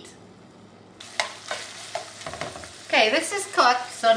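Ground meat sizzles in a hot pan.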